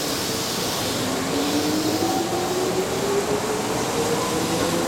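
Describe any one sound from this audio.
An electric train's motors whine, rising steadily in pitch as the train pulls away.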